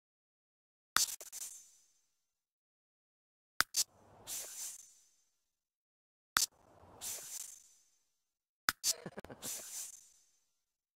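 Short clicks, each followed by a soft, bright whoosh, sound now and then.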